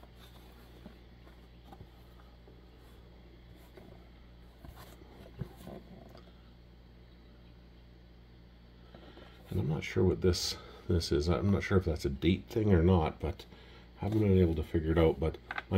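A box scrapes and taps softly as hands turn it over.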